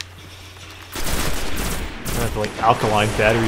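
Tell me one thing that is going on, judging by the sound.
A gun fires a quick burst of loud shots.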